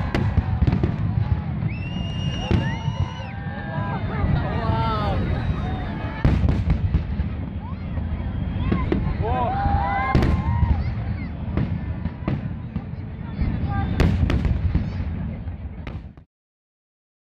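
Fireworks crackle and sizzle in the air.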